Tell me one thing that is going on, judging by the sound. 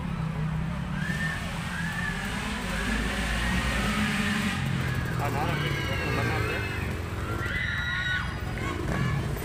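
A motorcycle engine revs and whines as the bike races past on a dirt track.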